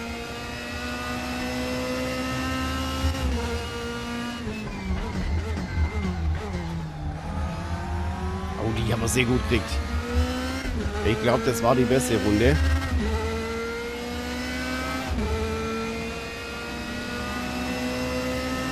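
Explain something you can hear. A racing car engine roars, revving up and dropping through gear changes.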